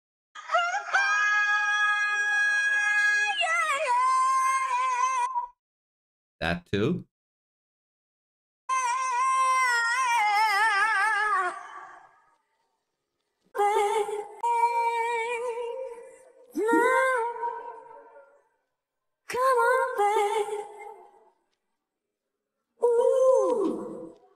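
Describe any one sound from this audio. A young woman sings high, held notes with vibrato in short phrases, heard through a recording.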